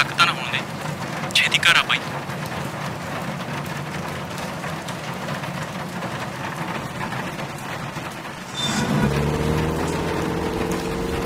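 Rain patters steadily on a car.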